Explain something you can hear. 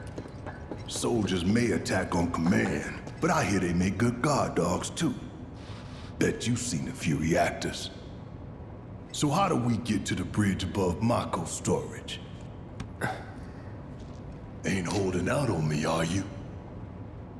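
A man speaks in a deep, gruff voice, close up.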